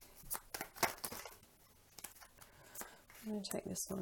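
Playing cards riffle and flick as a deck is shuffled.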